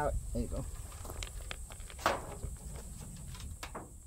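A wooden lid thuds shut.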